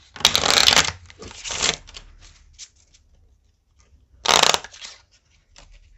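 Playing cards riffle and flutter as they are shuffled by hand.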